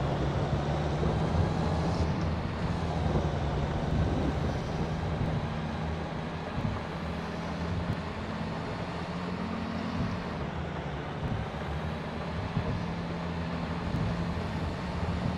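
Tyres rumble over a rough gravel track.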